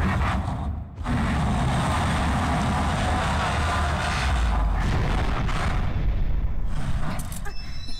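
A huge beast lets out a deep, rumbling roar.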